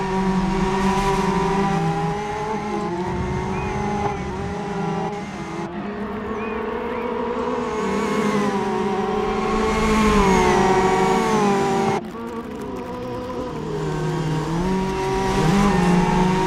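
Racing car engines roar and rev steadily.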